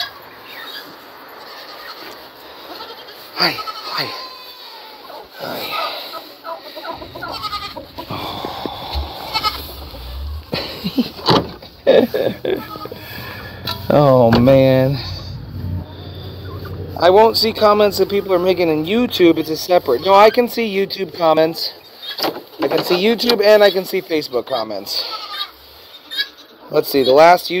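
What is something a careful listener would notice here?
Chickens cluck and squawk.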